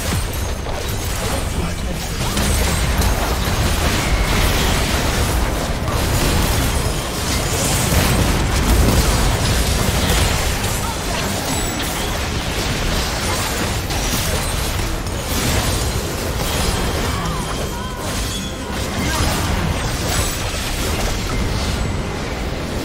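Video game spells crackle and boom in a dense battle.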